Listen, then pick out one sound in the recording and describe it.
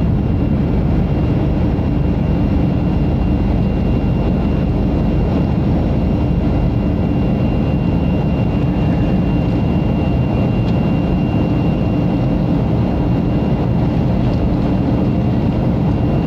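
Jet engines roar steadily from inside an airplane cabin.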